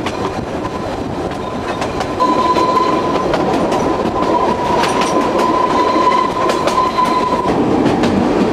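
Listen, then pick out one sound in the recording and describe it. Train wheels squeal on a curve.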